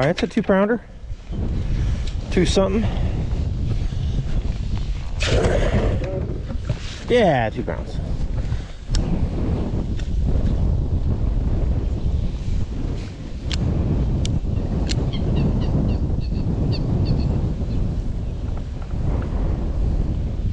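Wind blows steadily across the water outdoors.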